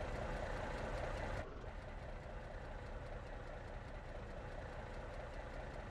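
A truck's diesel engine idles with a low, steady rumble.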